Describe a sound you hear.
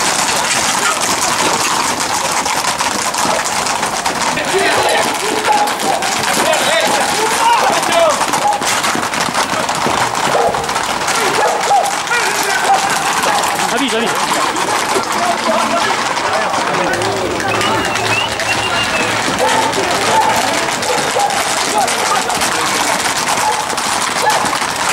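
Horse hooves clatter on a paved street.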